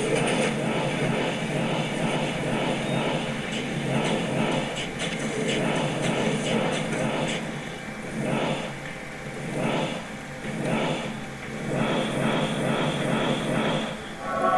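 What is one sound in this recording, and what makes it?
Fireballs whoosh and crackle as spells are cast.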